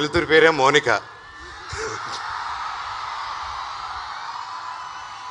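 A crowd cheers and murmurs in a large hall.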